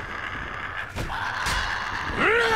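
A blade strikes flesh with a heavy thud.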